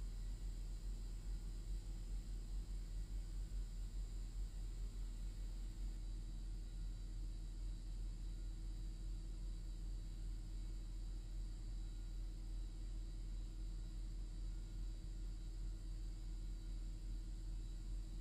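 Overhead lights hum steadily in a large empty hall.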